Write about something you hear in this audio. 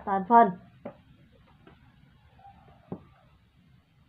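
A plastic ruler is set down on paper with a light tap.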